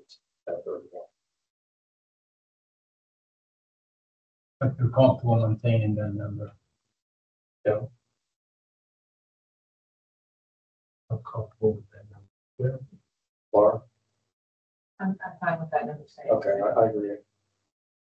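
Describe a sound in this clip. A man speaks calmly through a meeting microphone, in short bursts with pauses.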